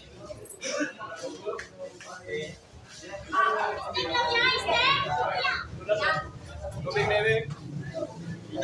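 Several young men talk and shout with animation nearby.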